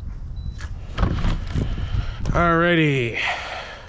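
A door opens.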